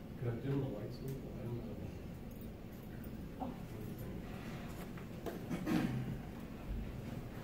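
A man speaks calmly to an audience in a room with a slight echo.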